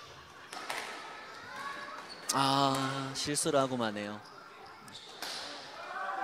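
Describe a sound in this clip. A squash ball smacks off a racket and echoes off the court walls.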